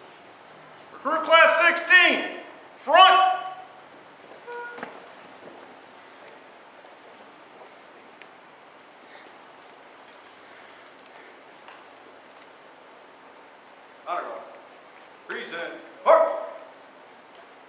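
A man shouts commands loudly in an echoing hall.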